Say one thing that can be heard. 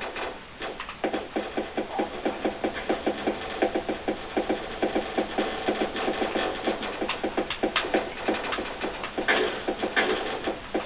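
Rapid laser shots fire in quick bursts.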